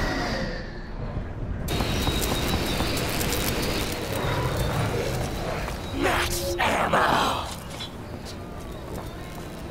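Video game sound effects rumble and whoosh loudly.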